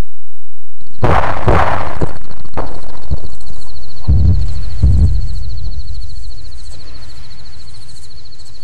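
Explosions rumble heavily and roll away.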